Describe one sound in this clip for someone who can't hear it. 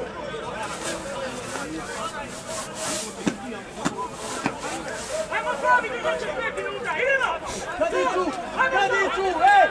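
Several young men shout and call to each other across an open outdoor field.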